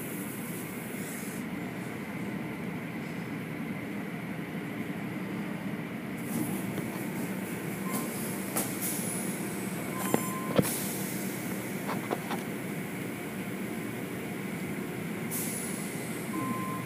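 Water sprays and splashes steadily against a car.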